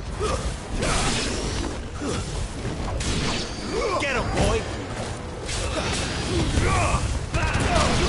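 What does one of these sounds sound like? Fire bursts and crackles in explosive blasts.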